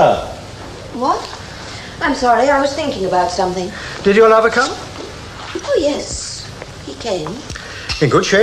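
A woman speaks calmly through an old television soundtrack.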